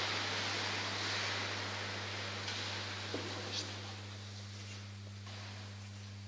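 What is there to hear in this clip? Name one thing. Footsteps knock softly in a large echoing hall.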